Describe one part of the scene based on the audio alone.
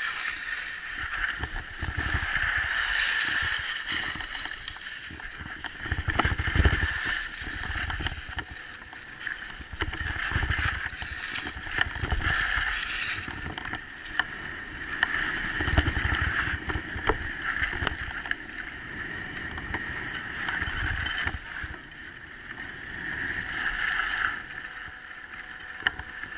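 Skis scrape and hiss over packed snow.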